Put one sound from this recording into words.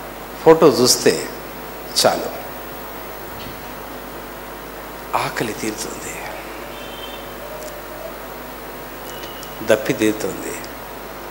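A middle-aged man speaks calmly and slowly into a microphone, with pauses.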